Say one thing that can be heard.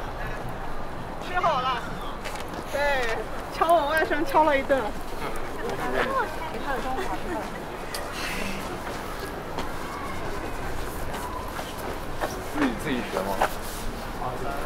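Young men and women chatter nearby.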